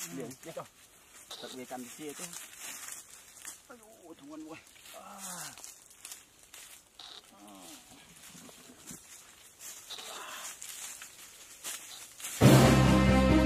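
Footsteps crunch over dry leaves.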